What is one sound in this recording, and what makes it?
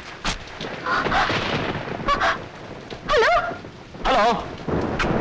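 A woman speaks anxiously into a phone.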